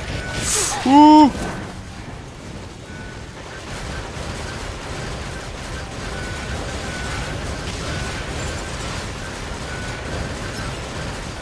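Blades and blows clash in a fight.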